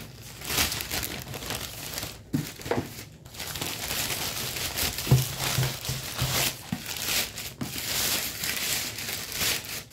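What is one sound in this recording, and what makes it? A plastic sheet rustles and crinkles as it is handled.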